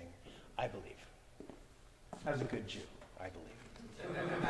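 A man speaks briefly in an echoing hall.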